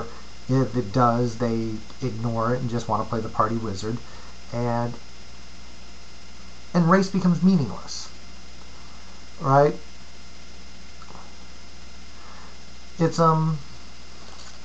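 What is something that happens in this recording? A middle-aged man talks calmly and close to the microphone, with pauses.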